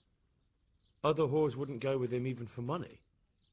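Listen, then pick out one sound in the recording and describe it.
A young man speaks calmly at length.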